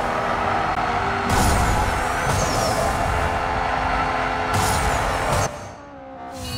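A game car engine roars at high speed.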